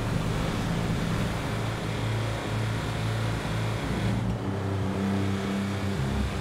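An armoured truck's engine rumbles steadily as it drives.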